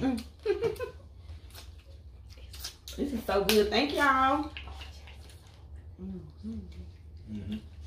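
A woman chews food noisily close by.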